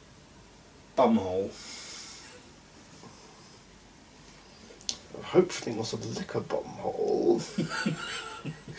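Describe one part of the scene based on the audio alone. A young man speaks and laughs nearby.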